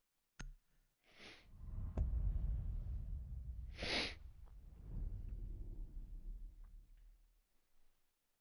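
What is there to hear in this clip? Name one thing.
A deep booming whoosh swells up and slowly rumbles away.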